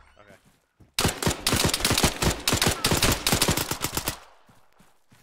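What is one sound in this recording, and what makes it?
A rifle fires in a rapid, loud burst of shots.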